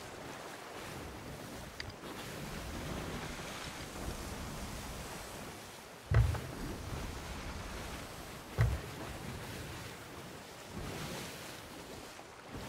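Waves rush and splash against a wooden ship's hull.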